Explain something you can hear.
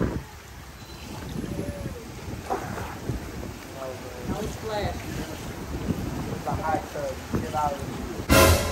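Water bubbles and churns in a hot tub.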